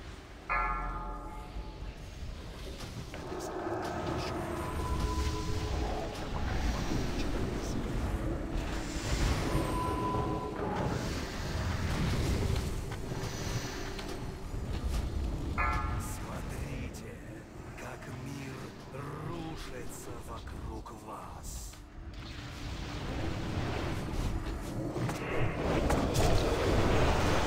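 Spell effects and combat sounds from a game crackle and boom steadily.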